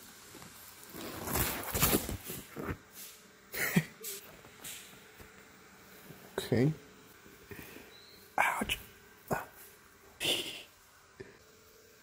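Fabric rustles and bumps close by.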